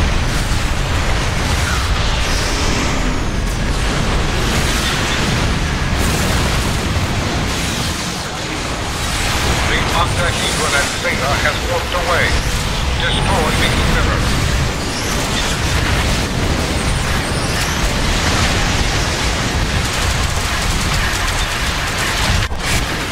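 Weapons fire rumbles with deep booming.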